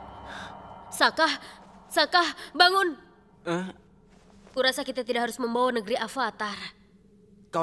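A young boy speaks softly and sleepily.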